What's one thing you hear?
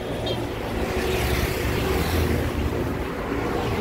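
A motorcycle engine hums as it passes close by.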